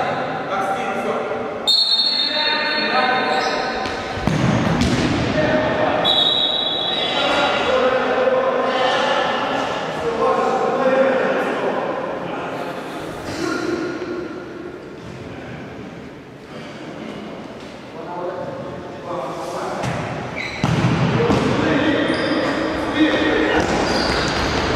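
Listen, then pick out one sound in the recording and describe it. Young men shout to one another in an echoing hall.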